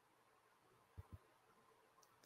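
Fingers tap against a plastic radio handset.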